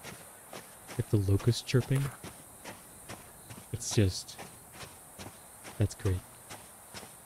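A man speaks casually, close to a microphone.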